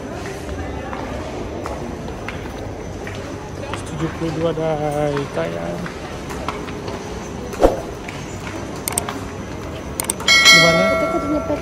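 A low murmur of indoor crowd noise carries throughout.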